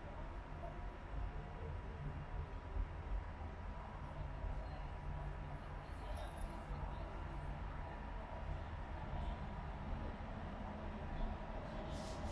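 A train rumbles across a bridge in the distance.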